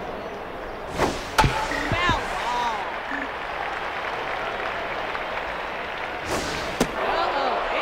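A ball smacks into a catcher's mitt.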